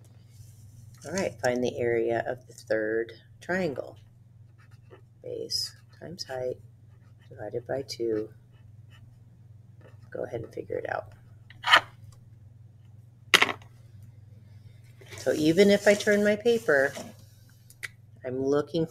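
A woman explains calmly and at length, close to a microphone.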